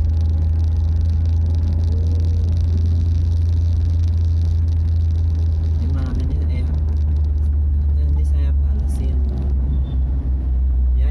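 Motorbikes ride along the road nearby.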